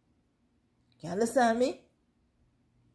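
A young woman speaks briefly close to the microphone with animation.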